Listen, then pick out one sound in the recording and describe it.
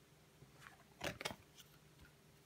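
Cards tap softly onto a cloth-covered table.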